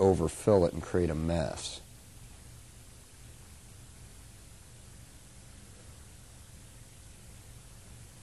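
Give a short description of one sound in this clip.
Liquid trickles steadily into a funnel.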